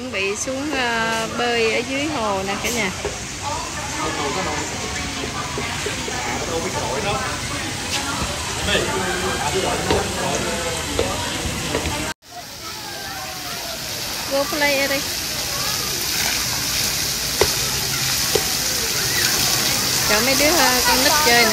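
Children and adults talk and call out nearby outdoors.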